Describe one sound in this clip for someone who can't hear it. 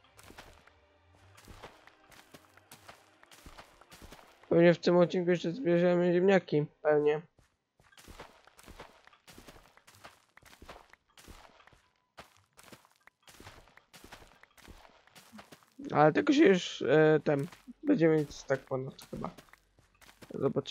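Blocks break with short crunching sounds in a game.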